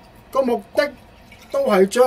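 Liquid pours from a bottle into water.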